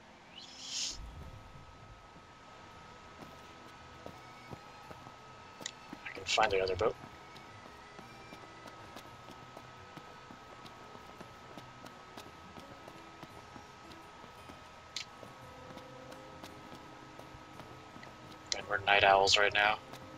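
Quick footsteps run on stone paving.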